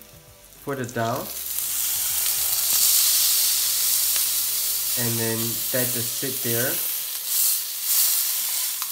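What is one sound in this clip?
Fish sizzles loudly in hot oil in a frying pan.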